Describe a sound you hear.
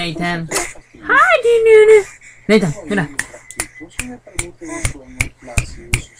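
A baby babbles and coos close by.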